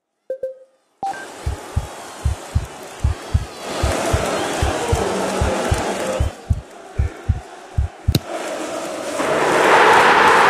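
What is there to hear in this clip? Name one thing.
A stadium crowd roars steadily and swells louder at the end.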